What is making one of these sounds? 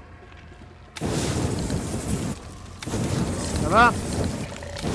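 A flamethrower roars loudly in bursts.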